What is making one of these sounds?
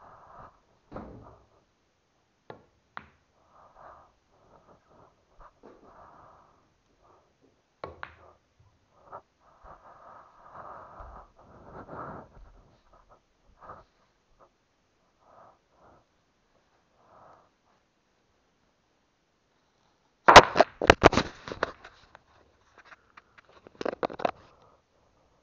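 Billiard balls clack sharply as a cue strikes.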